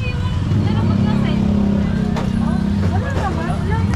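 Women talk and laugh nearby.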